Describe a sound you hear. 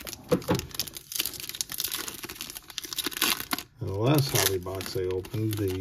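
Hands tear open a crinkling foil wrapper.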